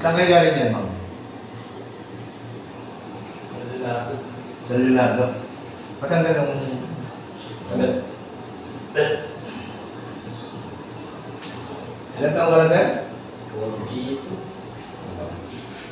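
A man speaks calmly nearby in short phrases.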